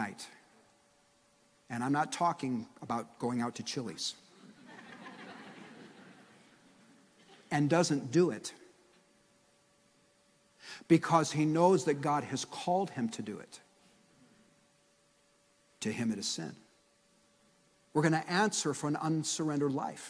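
A man speaks with animation through a microphone in a large hall, pausing between phrases.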